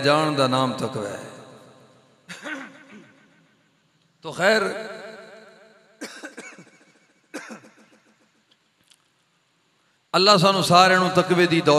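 A man chants through a microphone in long echoing phrases, with pauses between them.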